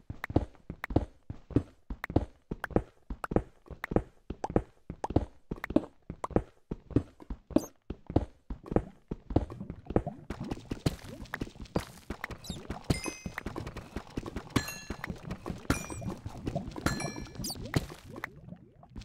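Blocks break and crumble.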